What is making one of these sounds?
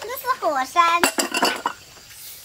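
A ceramic bowl knocks onto a wooden table.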